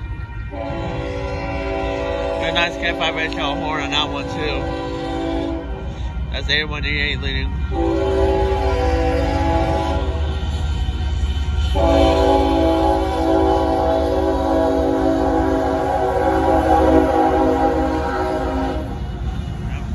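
A train horn blares loudly in long, repeated blasts nearby.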